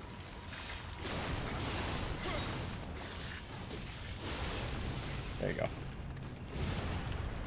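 Metal blades clash and clang.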